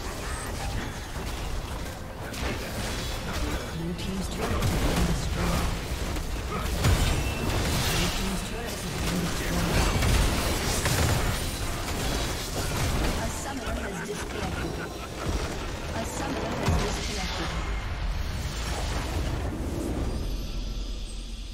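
Game spells and weapons clash and blast in a busy fight.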